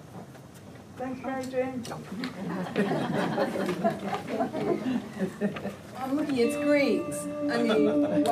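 A keyboard plays chords.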